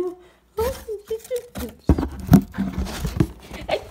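A toy rattles as a hand picks it up.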